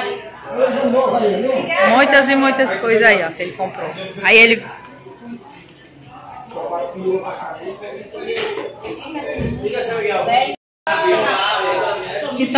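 Several adults talk with animation close by.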